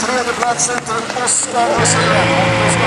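A car engine revs hard outside as the car races by.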